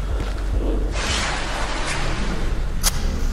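A match strikes and flares with a hiss.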